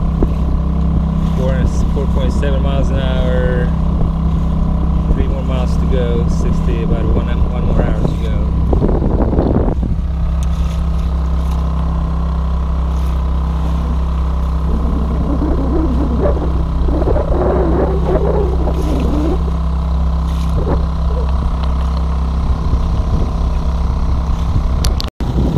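Water splashes and rushes against a moving boat's hull.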